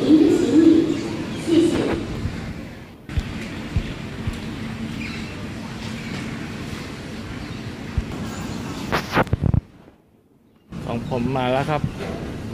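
A baggage carousel hums and clatters steadily in a large echoing hall.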